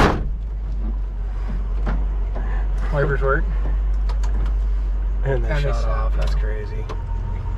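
Windshield wipers swish back and forth across the glass.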